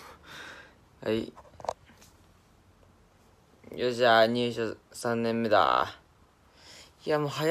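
A young man speaks close to a phone microphone, with a casual, animated voice.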